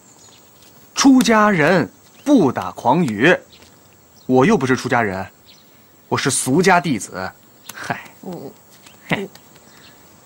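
A young boy speaks cheekily up close.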